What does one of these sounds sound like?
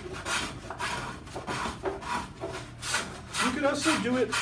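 A hand plane shaves wood in quick, rasping strokes.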